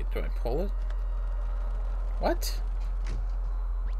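A wooden cupboard door swings open.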